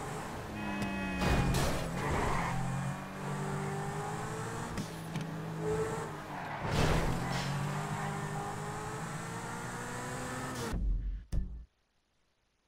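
A sports car engine roars and revs as it speeds along.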